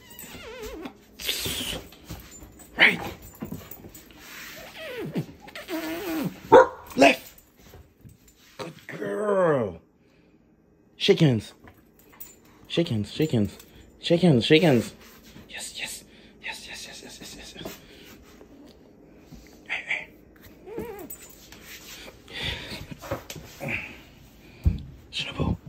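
A dog's claws click and scrape on a hard floor.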